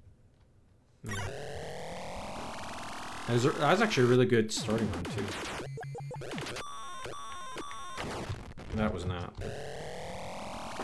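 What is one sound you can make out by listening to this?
Electronic arcade game sounds zap and sweep up and down.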